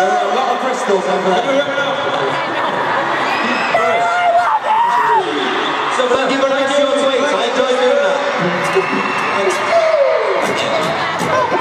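A large crowd of young girls screams and cheers loudly in a big echoing arena.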